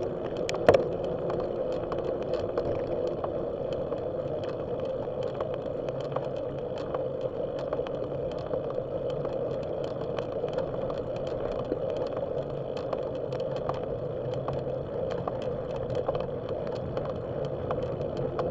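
Bicycle tyres roll steadily on rough pavement, with small rattles and ticks.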